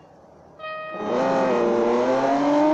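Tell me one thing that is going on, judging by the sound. Race car engines roar and rev up loudly.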